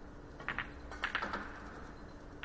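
Balls clack together and knock against a cushion.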